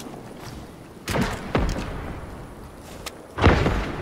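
Footsteps splash through shallow water.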